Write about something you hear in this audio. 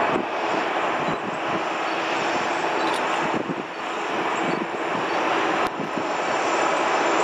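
A freight train rumbles steadily along the tracks in the distance.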